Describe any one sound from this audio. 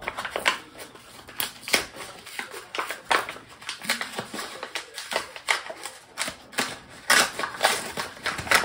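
A paper bag crinkles and rustles as it is torn open.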